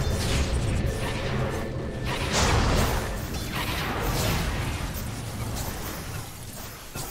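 Game spell effects whoosh and crackle in a battle.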